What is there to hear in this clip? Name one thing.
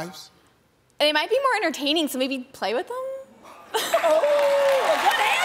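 A young woman laughs and talks.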